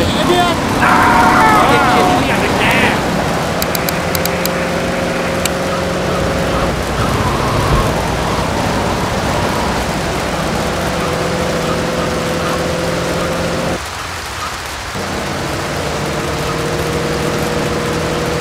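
A car engine hums steadily as a car drives along.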